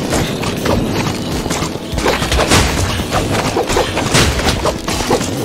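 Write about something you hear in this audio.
Magic blasts whoosh and crackle in rapid bursts.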